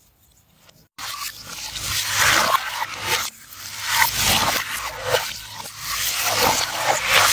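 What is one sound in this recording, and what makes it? Water splashes onto a face and hands.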